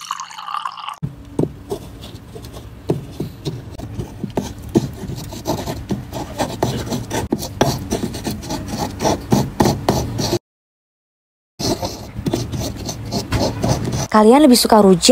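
A wooden pestle grinds and knocks against a stone mortar.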